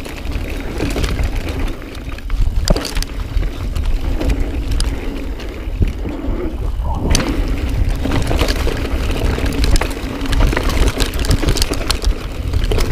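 A mountain bike rattles and clatters over bumps.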